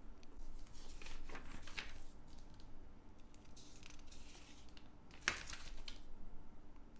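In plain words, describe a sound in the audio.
Glossy catalogue pages rustle and flip as they are turned.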